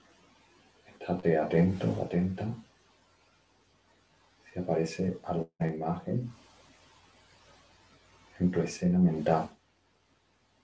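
A young man speaks calmly, with pauses, into a computer microphone.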